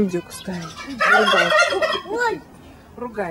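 A turkey gobbles loudly.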